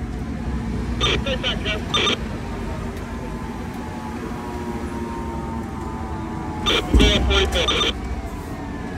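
A fire engine's air horn blasts in short loud bursts.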